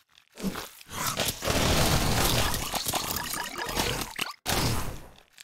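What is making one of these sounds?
A large explosion roars and crackles.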